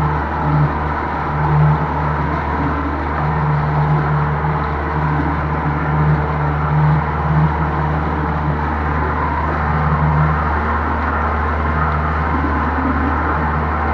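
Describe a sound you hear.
An outboard motor drones steadily close by.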